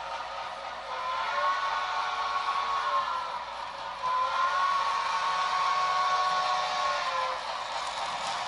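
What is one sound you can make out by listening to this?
A model train horn sounds twice, in long blasts.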